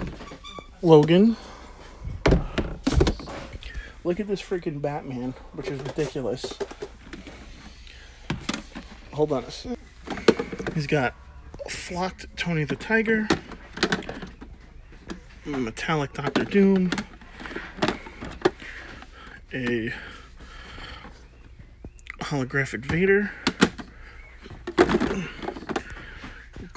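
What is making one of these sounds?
Plastic boxes knock and click as hands pick them up and shuffle them.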